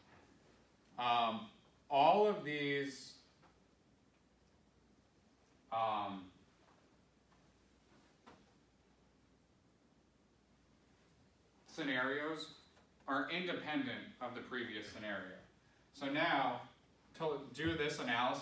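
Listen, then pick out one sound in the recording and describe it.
A man lectures calmly, with pauses between phrases.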